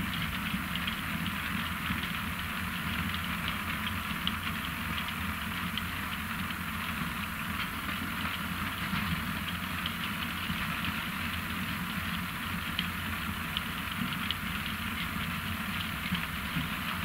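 A heavy harvester engine drones steadily.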